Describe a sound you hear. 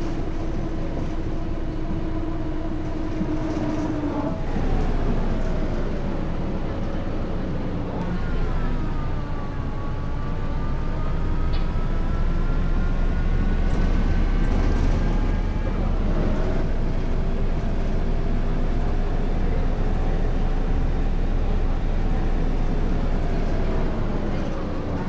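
A bus engine hums and whines as it drives, its pitch rising and falling with speed.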